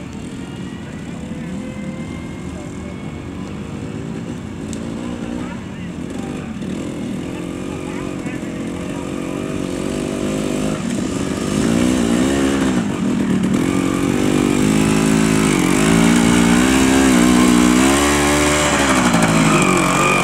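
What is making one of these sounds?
A motorcycle engine revs and grows louder as the bike approaches through mud.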